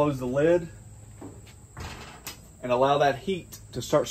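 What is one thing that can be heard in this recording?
A metal grill lid shuts with a clunk.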